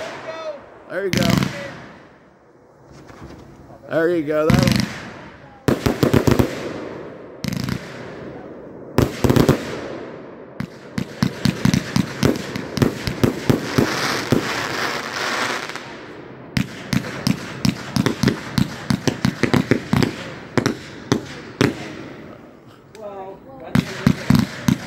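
Fireworks explode with loud booms that echo.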